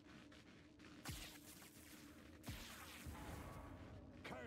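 Lightning cracks loudly.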